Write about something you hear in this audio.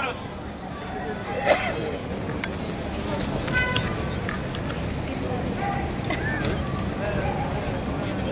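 A man speaks through a megaphone.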